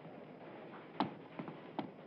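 Footsteps hurry up stairs.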